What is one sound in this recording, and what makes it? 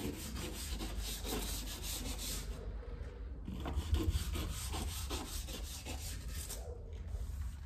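A cloth scrubs against a baseboard with a rapid rubbing sound.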